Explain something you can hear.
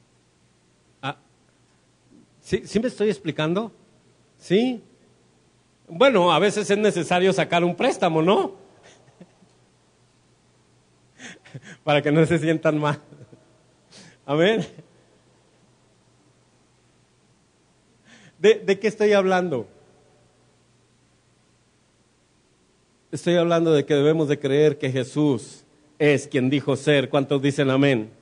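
A man preaches with passion into a microphone over loudspeakers, in bursts with pauses, in an echoing room.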